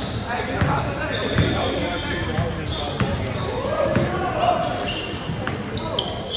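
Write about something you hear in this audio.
Players shout and call out to each other.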